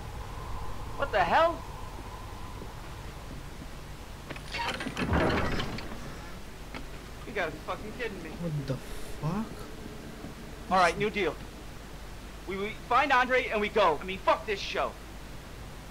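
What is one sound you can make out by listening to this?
A man mutters nervously to himself, close by.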